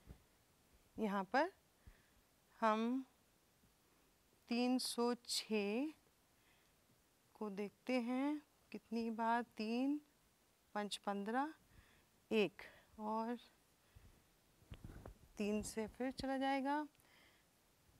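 A woman explains calmly into a close microphone.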